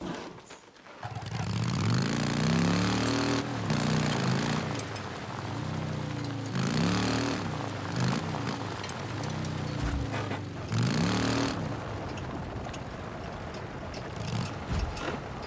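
A motorcycle engine rumbles and revs up and down repeatedly.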